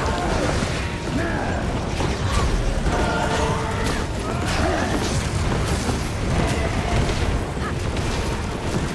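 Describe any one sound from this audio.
Magic blasts crackle and boom during a fast battle.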